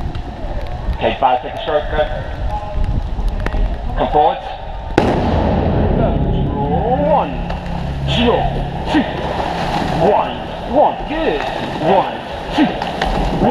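Men call out from a nearby riverbank.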